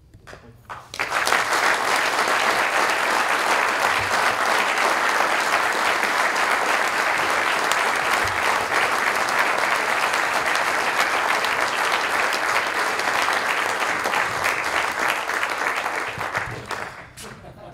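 Loud applause fills an echoing hall.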